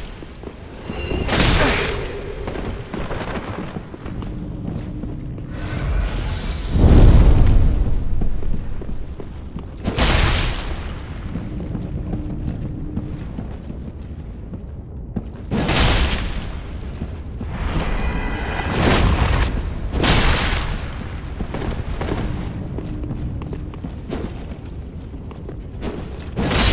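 Armoured footsteps scrape and thud on a stone floor.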